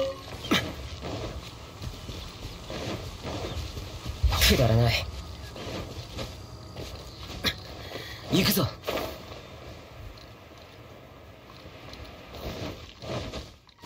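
Quick footsteps run over grass and stone.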